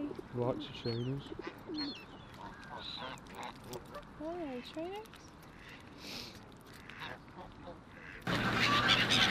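A goose honks softly close by.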